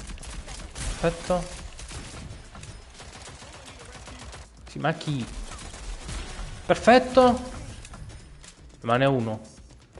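A young man talks excitedly and shouts close to a microphone.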